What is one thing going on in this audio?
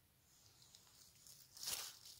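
Dry grass and leaves rustle as a hand brushes through them.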